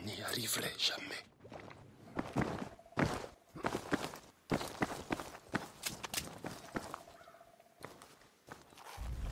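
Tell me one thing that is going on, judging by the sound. Footsteps thud steadily on a hard path.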